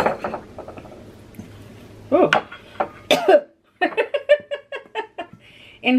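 A spatula scrapes dough from a metal bowl.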